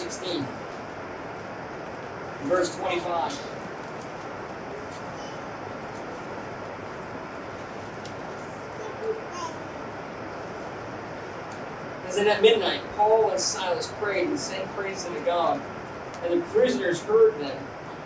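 A man reads aloud calmly nearby, with long pauses.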